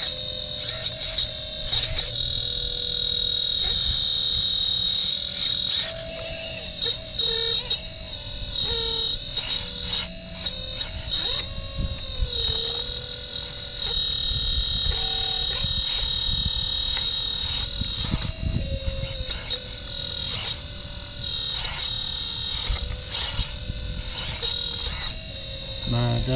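A toy excavator's bucket scrapes and knocks in dry leaves and soil.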